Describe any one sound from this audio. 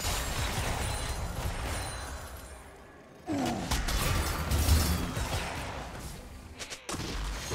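Spell effects and weapon hits crackle and thump in a video game fight.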